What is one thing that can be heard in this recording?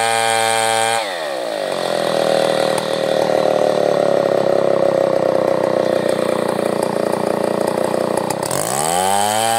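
A chainsaw cuts through a wooden log.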